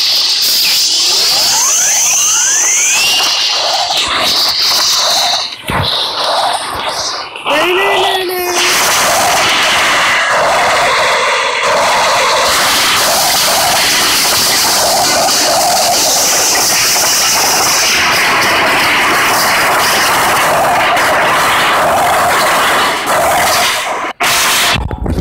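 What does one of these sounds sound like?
Wind rushes loudly past a diving skydiver.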